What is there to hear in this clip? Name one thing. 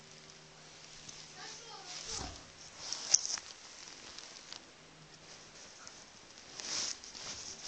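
A cat scuffles and paws on bedding.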